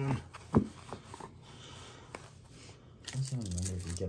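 Cards slide and shuffle against each other.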